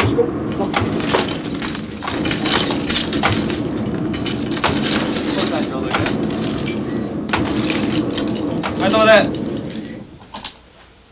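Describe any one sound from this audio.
A forge fire roars loudly and crackles.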